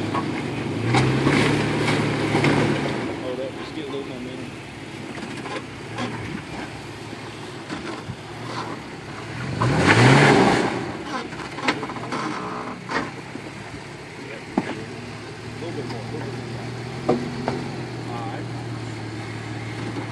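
Tyres crunch and grind over rocks.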